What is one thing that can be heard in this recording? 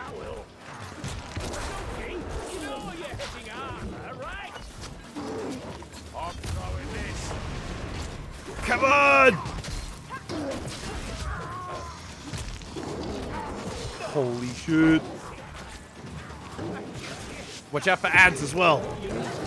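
A heavy hammer swings and thuds into bodies.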